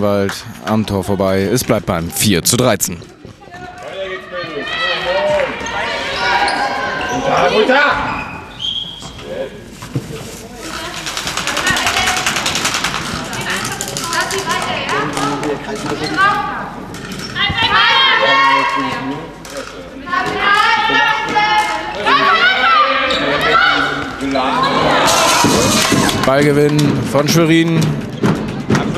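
Young women shout and call out to each other in an echoing sports hall.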